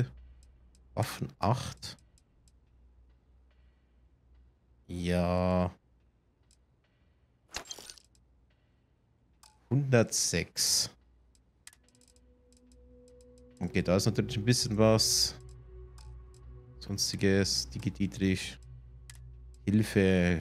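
Short interface clicks sound as menu selections change.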